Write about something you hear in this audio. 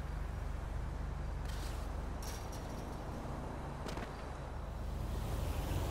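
Footsteps run on the ground.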